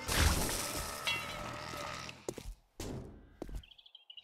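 A metal door opens with a creak.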